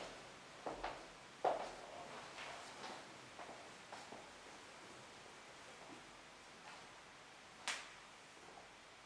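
Soft footsteps shuffle across a hard floor.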